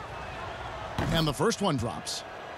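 A basketball swishes through the net.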